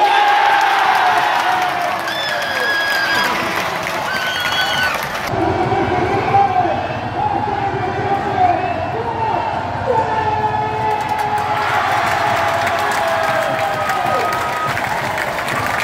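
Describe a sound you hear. A crowd of fans sings and chants together.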